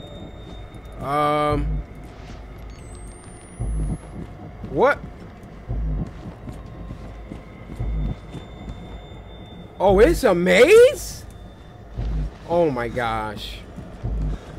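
A young man speaks and exclaims with animation into a close microphone.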